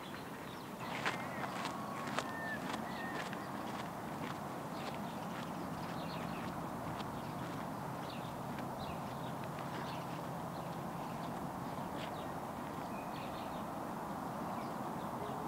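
Footsteps crunch on gravel and slowly fade into the distance.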